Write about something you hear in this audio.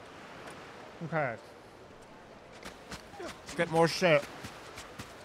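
A young man speaks animatedly into a close microphone.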